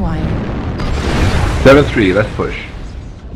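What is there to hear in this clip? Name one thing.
A big explosion bursts at the end.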